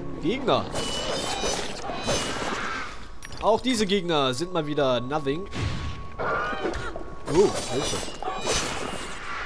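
Blades slash and clang in quick strikes.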